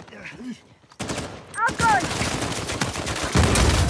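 A rifle fires in sharp bursts close by.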